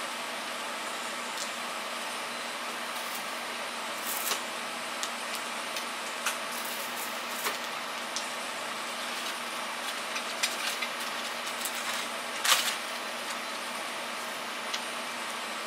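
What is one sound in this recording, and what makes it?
A small tool scrapes and taps faintly on metal.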